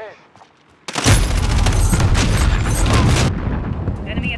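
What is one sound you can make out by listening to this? Gunfire rattles loudly in quick bursts.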